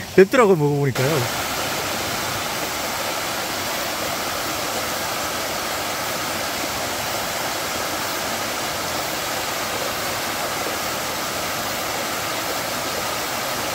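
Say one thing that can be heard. A small waterfall splashes and rushes steadily over rocks.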